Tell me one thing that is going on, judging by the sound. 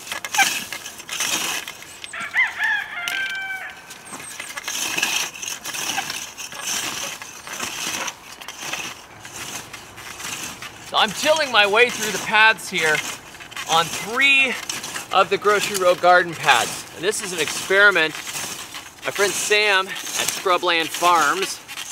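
A wheel hoe scrapes and rattles through soil.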